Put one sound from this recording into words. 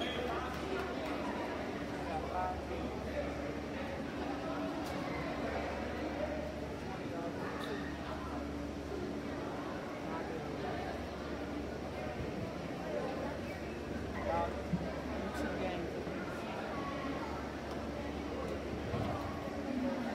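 A crowd of spectators murmurs and chatters in a large echoing gym.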